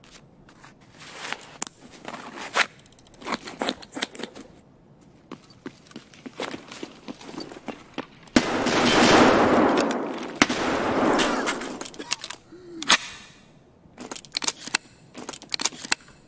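Footsteps thud and scrape on a hard floor.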